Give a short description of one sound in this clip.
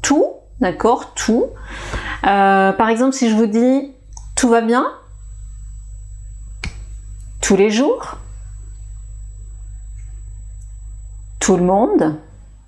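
A woman speaks calmly and clearly into a nearby microphone, pausing between short phrases.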